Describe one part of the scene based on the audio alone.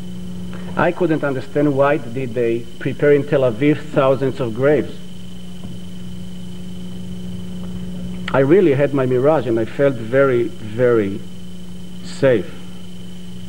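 A middle-aged man speaks calmly and deliberately into a microphone.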